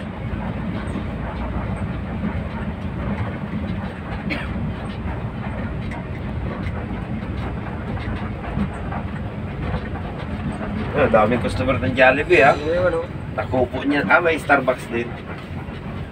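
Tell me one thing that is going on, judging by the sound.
A bus engine rumbles steadily while driving along a road.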